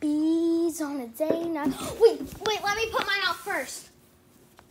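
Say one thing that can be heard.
A young girl sings loudly close by.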